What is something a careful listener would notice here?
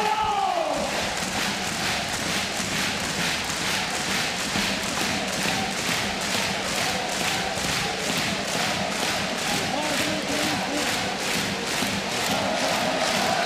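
A crowd claps in a steady, fast rhythm.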